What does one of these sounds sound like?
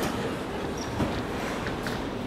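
A door clicks open.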